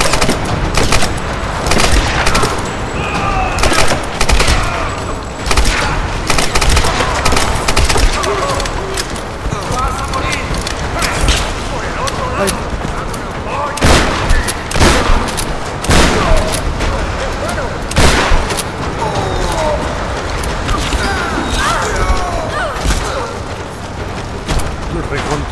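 Gunshots ring out in sharp, repeated bursts.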